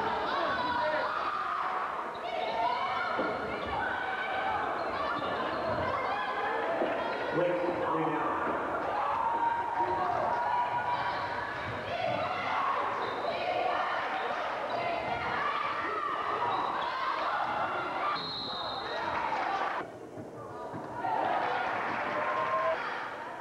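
Spectators chatter and cheer in a large echoing hall.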